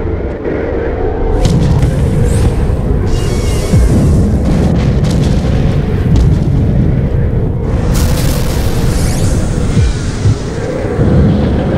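A strong wind howls through a snowstorm.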